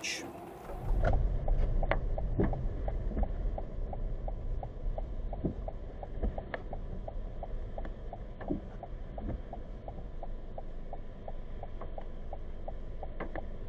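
A car engine idles with a low steady rumble.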